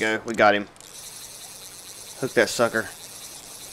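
A fishing reel whirs as line is reeled in.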